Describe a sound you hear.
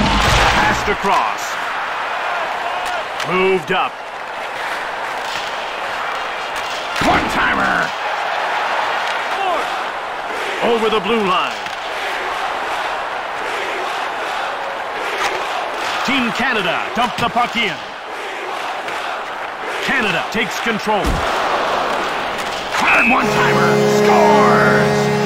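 A large crowd murmurs and roars in an echoing arena.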